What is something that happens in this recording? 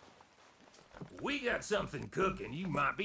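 A man speaks in a low, gravelly voice.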